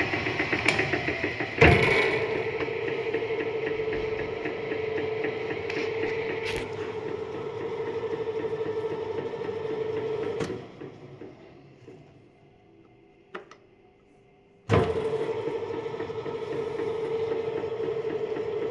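A mixer's motor hums steadily and then winds down.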